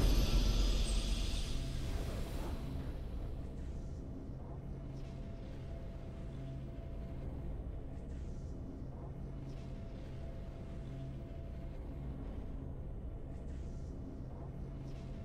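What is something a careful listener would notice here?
Calm triumphant music plays softly.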